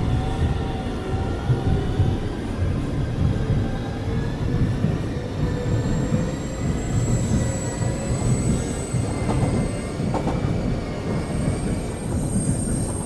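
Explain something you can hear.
A train's electric motor whines, rising in pitch as it speeds up.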